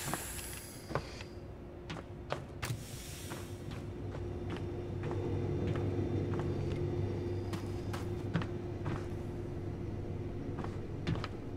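Footsteps tap on a metal floor.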